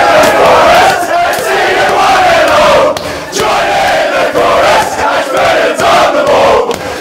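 Young men clap their hands.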